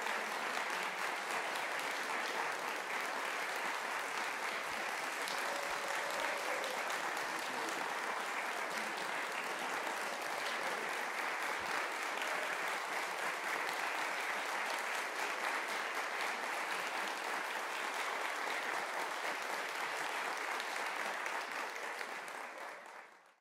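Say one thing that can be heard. An audience applauds loudly in a hall and slowly fades out.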